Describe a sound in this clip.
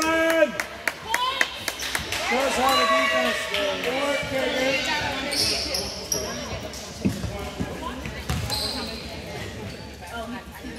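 Sneakers squeak on the hardwood court.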